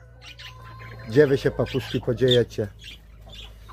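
Budgerigars chirp and chatter.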